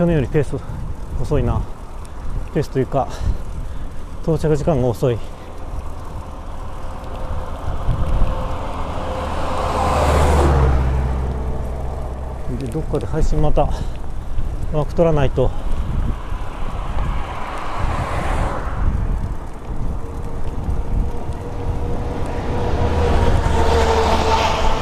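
A vehicle's engine hums and its tyres roll steadily on the road.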